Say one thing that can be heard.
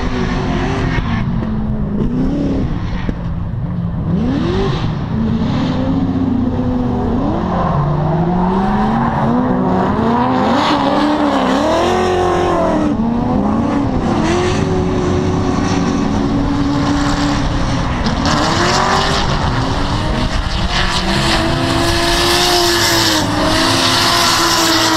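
Racing car engines roar and rev up and down in the distance.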